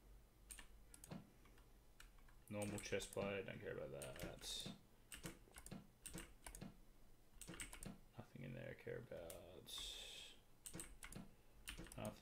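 Soft clicks sound again and again.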